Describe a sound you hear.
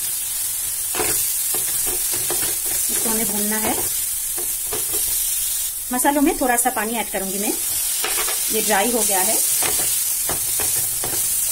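A spatula scrapes and stirs food in a frying pan.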